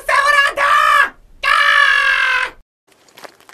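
A woman speaks in a sly, playful voice.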